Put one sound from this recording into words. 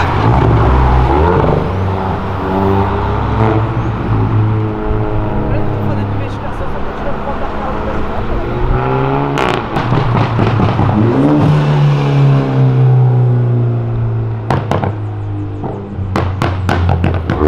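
Car engines hum and rev loudly as the cars drive past on a street.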